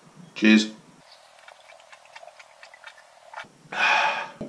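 A man gulps down a drink.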